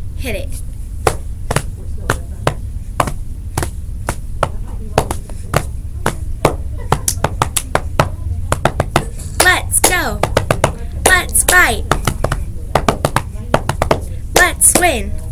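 Hands clap and slap in a quick, steady rhythm.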